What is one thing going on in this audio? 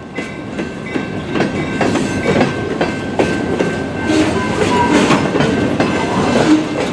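Freight cars rumble past close by on the rails.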